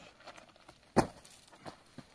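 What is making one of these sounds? A man lands on the ground with a heavy thud.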